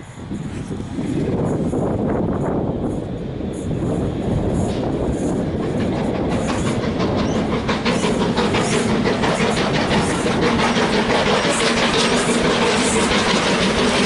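A train rumbles along the rails, growing louder.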